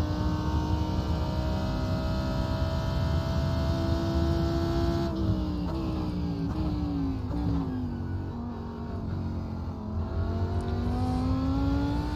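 A racing car engine roars at high speed, then drops in pitch through downshifts as it brakes, and rises again as it speeds up.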